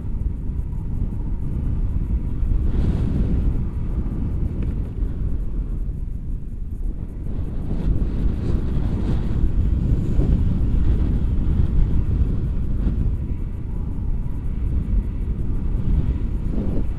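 A woman speaks near the microphone, partly drowned by wind.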